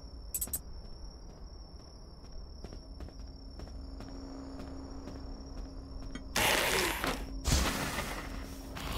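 Footsteps fall on pavement.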